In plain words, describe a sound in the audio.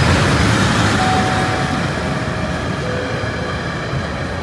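Metal wheels squeal faintly against the rails.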